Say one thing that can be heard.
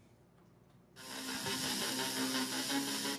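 A tablet plays back a clip's sound through its speaker.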